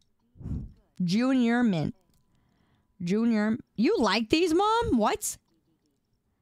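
A young woman speaks in a lively, sing-song voice through a microphone.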